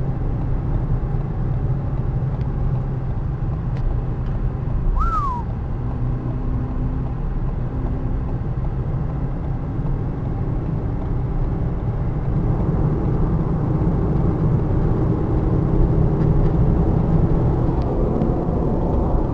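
Tyres rumble steadily on the road inside a moving car, growing louder later on.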